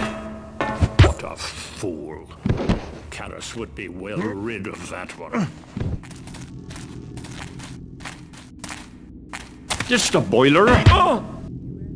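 A club strikes a body with a heavy thud.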